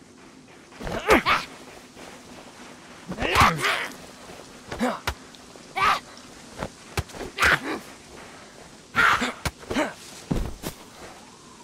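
A wooden stick thuds against a body again and again.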